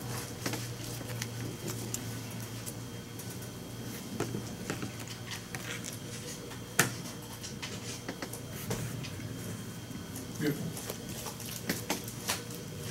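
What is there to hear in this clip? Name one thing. Playing cards are shuffled and slapped down on a table.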